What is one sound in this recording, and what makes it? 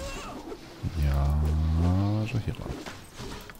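A bear growls and roars.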